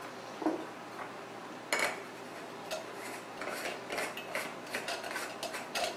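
Metal parts of a coffee pot clink as they are screwed together.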